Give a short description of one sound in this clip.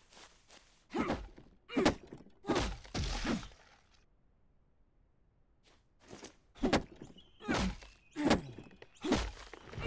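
An axe chops into a tree trunk with heavy thuds.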